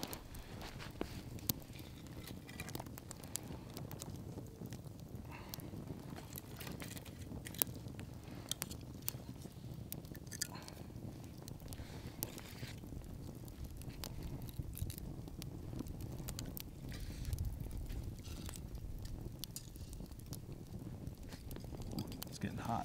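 Wooden sticks knock and clatter against each other.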